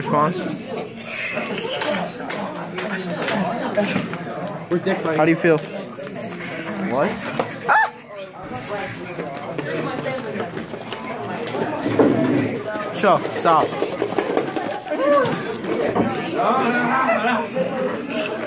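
Young men talk and laugh close by in a small room.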